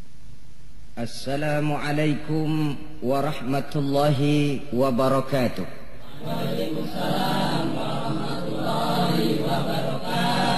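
A man speaks with animation, close to the microphone.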